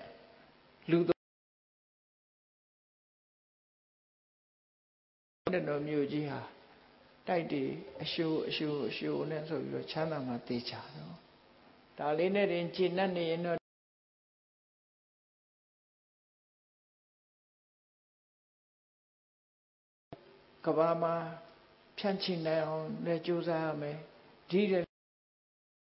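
A group of men chant together in unison in a large room.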